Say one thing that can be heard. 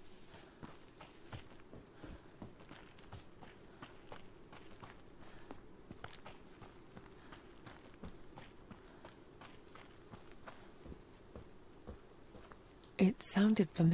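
Footsteps crunch steadily along a forest path.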